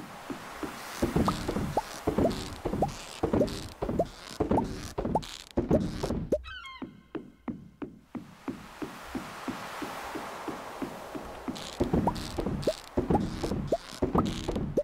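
Footsteps thump on wooden boards.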